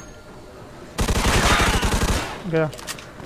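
A submachine gun fires a rapid burst close by.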